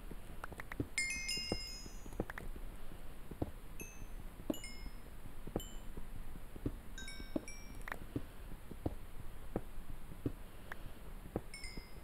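Small items pop up with short, high chimes.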